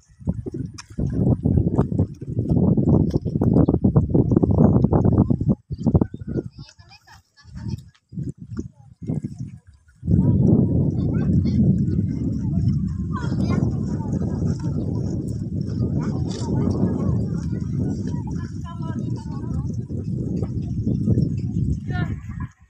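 People wade and splash through shallow water nearby.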